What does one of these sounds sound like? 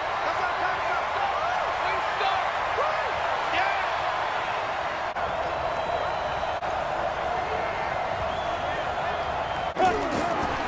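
A large crowd cheers and roars steadily in a stadium.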